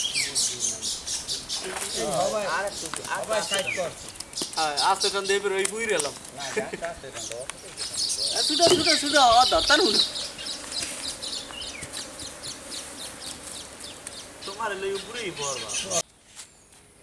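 Men talk with animation outdoors nearby.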